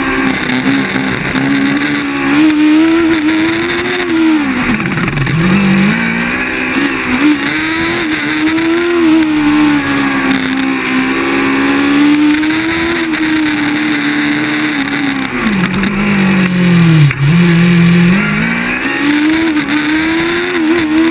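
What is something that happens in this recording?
A racing car engine roars loudly up close, its pitch rising and dropping as it speeds up and slows for turns.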